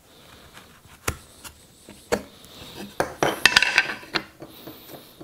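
Wooden pieces knock on a workbench.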